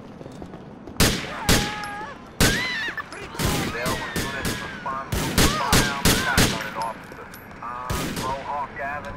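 Gunshots crack loudly, one after another.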